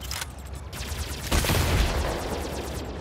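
An explosion booms in a game.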